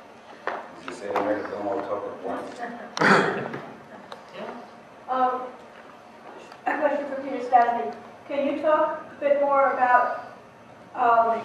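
A woman speaks into a microphone in a room with a slight echo.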